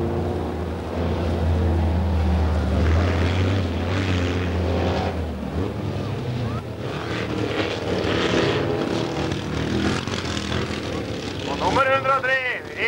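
Race car engines roar and rev on a dirt track.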